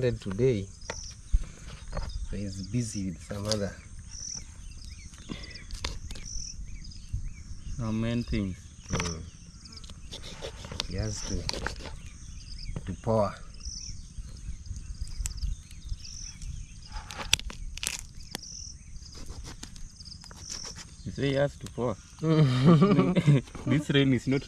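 A knife cuts and scrapes through raw chicken in a plastic bowl.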